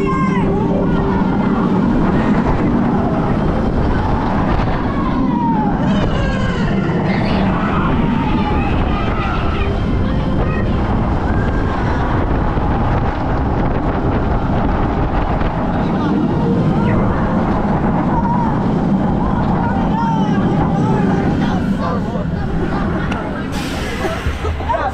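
Wind roars loudly past a spinning amusement ride.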